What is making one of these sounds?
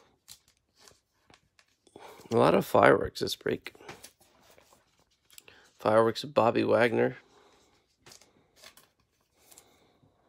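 Plastic card wrapping crinkles between fingers.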